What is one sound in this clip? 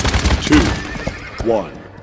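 Horse hooves clop along a hard floor.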